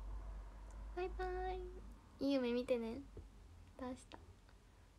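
A young woman speaks with animation, close to the microphone.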